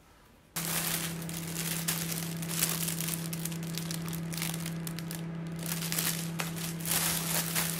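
Plastic bags crinkle and rustle as vegetables are handled.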